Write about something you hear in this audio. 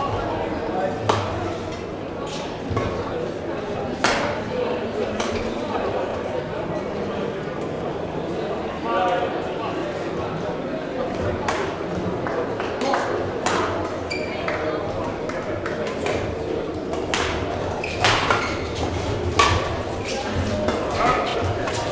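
Shuttlecocks are struck sharply with rackets, echoing in a large hall.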